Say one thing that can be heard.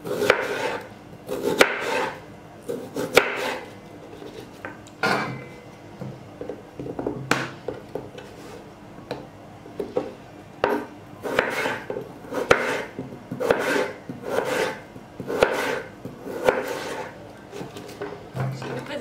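A knife chops through potatoes on a wooden board with sharp knocks.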